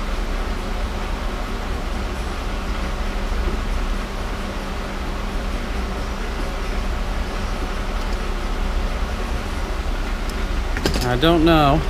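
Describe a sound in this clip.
Metal tools clink and click against an engine part.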